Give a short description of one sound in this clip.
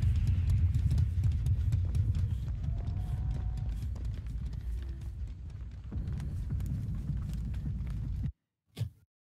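Footsteps rustle quickly through grass and brush.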